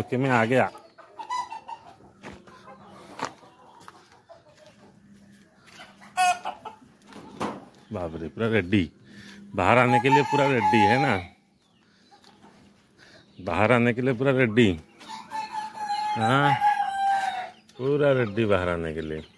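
Hens cluck softly.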